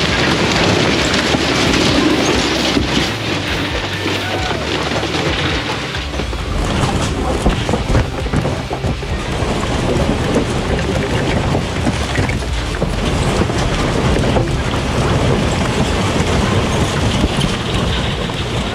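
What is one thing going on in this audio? Debris clatters and crashes against walls.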